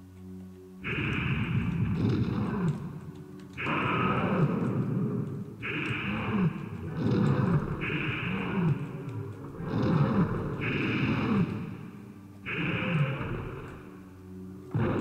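A creature roars and growls loudly, again and again in long bursts.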